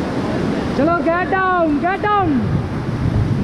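A man whoops loudly from close by.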